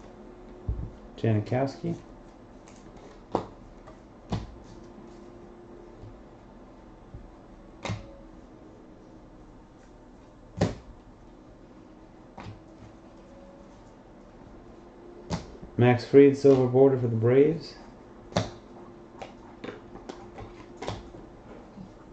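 Trading cards flick and snap as they are shuffled through by hand.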